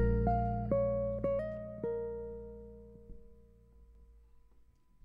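Musical notes ring out and fade away at the end of a piece.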